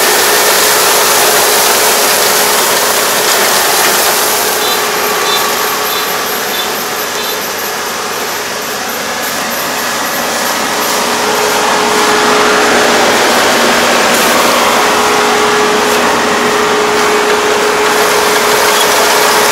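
Rice stalks rustle and swish as a combine harvester cuts through them.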